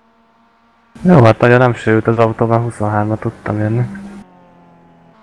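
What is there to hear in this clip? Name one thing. A four-cylinder Mazda MX-5 races past at high revs.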